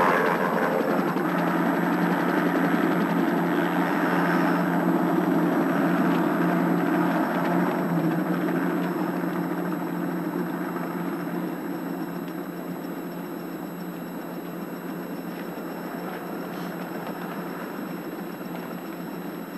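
A helicopter engine drones steadily nearby, then slowly fades.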